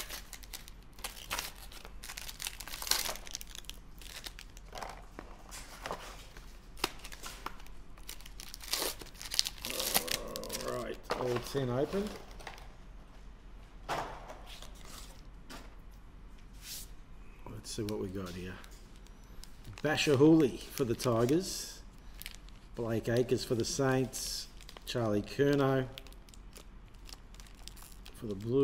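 Trading cards slide and tap against each other.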